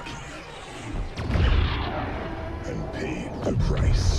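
A laser blast fires with a loud crackling roar.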